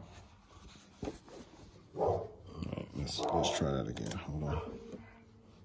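A sewing machine stitches through fabric with a quick, steady whir.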